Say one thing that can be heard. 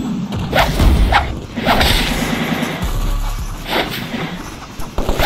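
Swords swish and clash in quick strikes.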